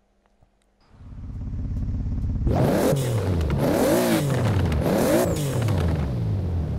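A sports car engine idles with a deep rumble.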